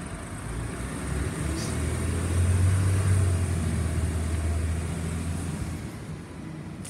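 A garbage truck's compactor whines and groans as it crushes a load.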